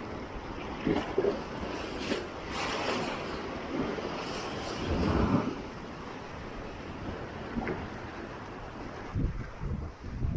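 Sea water surges and churns through a rocky channel.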